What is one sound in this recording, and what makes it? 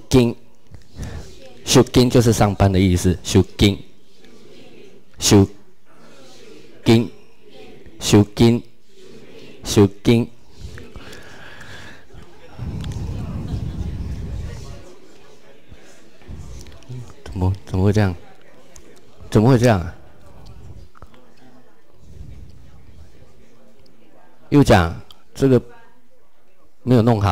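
A man speaks calmly into a microphone, with pauses between phrases.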